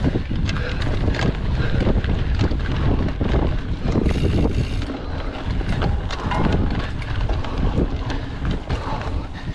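Wind rumbles loudly past the rider.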